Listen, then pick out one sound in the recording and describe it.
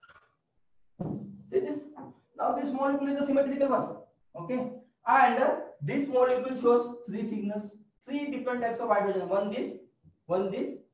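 A man lectures with animation, close by.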